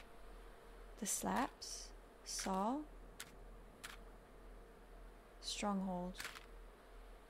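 A young woman speaks briefly and casually into a microphone, close by.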